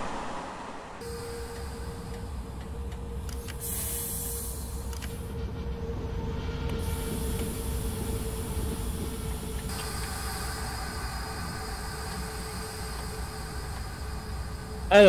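An electric train's motor hums steadily from inside the cab.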